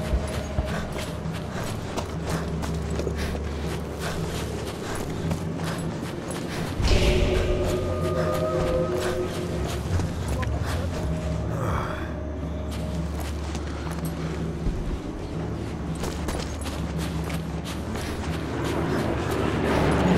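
Footsteps crunch quickly over sand and gravel.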